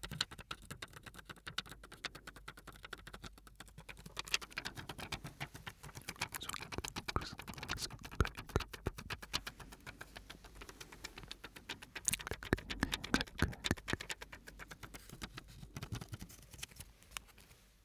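A plastic bag crinkles and rustles close to a microphone.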